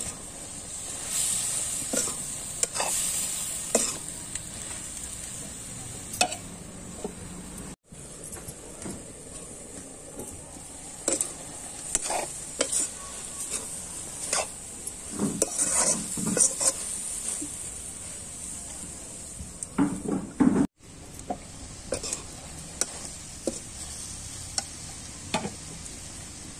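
A fire crackles under a pan.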